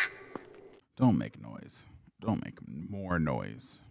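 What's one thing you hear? A young man talks calmly into a close headset microphone.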